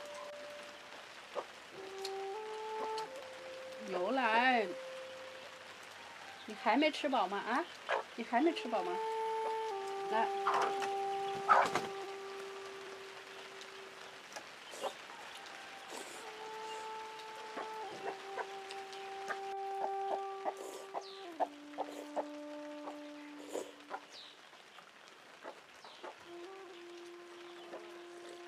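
A young woman slurps noodles up close.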